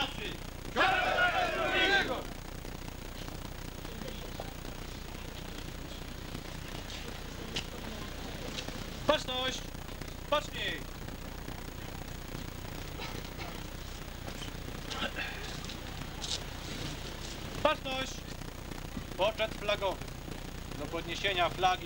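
A man speaks loudly and formally through a microphone and loudspeaker outdoors.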